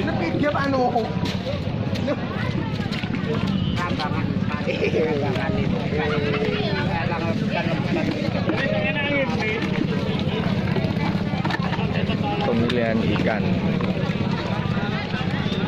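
A crowd of men and women chatter and call out all around, close by.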